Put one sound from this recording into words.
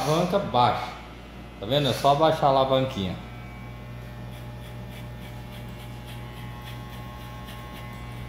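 An electric hair clipper buzzes steadily close by.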